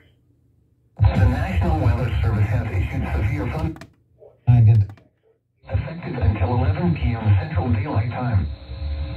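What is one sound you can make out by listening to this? A man speaks through a stereo loudspeaker.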